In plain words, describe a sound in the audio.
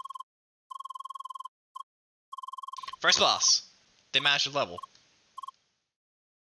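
Rapid electronic blips chirp as dialogue text prints out.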